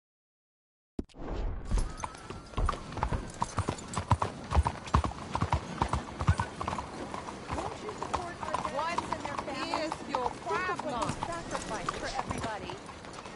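Horse hooves clop on cobblestones.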